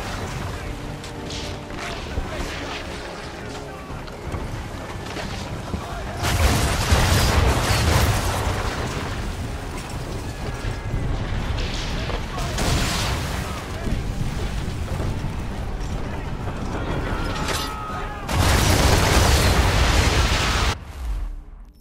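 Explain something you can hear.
Sea waves rush and splash against a ship's hull.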